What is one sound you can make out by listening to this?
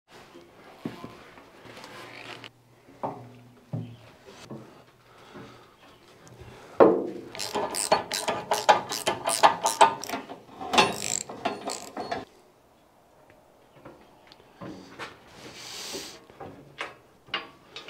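Metal panels clank and rattle as they are fitted onto an engine.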